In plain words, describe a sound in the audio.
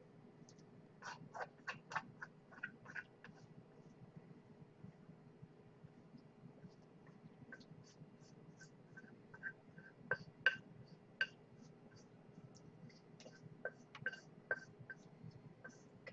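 Chopsticks scrape and clink against a metal pan.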